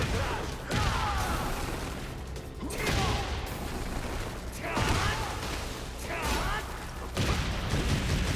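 Punches and kicks land with heavy thuds and cracks.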